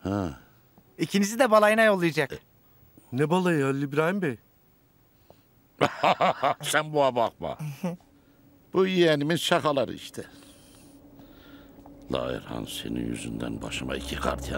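An older man speaks firmly.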